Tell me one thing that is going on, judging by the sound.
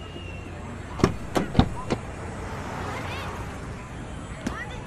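A car door latch clicks and the door swings open.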